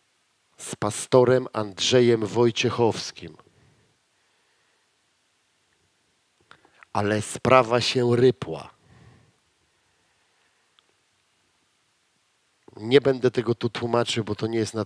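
A man speaks with animation through a headset microphone, pausing between phrases.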